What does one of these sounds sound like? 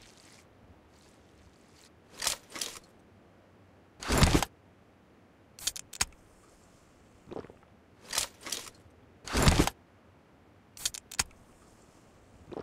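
A game character uses a healing item with rustling, clinking sounds.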